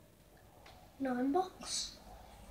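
A young boy speaks briefly.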